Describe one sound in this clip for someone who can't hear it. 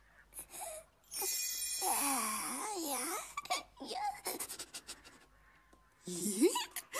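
A man makes excited gasping and giggling noises.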